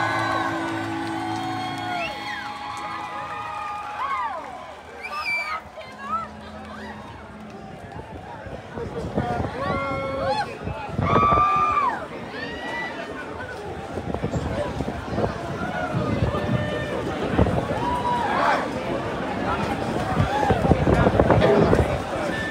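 A band plays loud amplified music with electric guitar.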